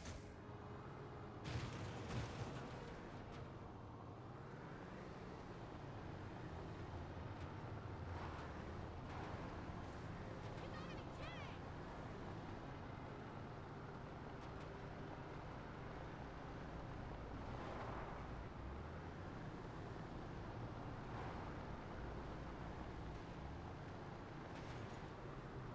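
Tyres crunch on dirt.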